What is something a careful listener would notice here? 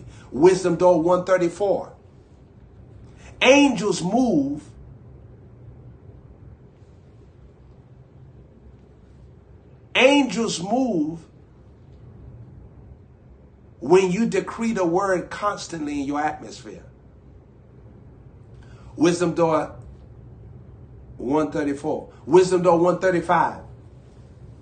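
A young man speaks with animation close to a microphone, in short bursts with pauses.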